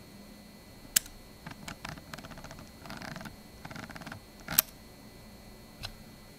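A computer mouse button clicks sharply several times.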